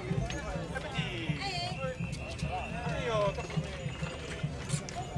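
Wooden cart wheels creak and squeal as they turn.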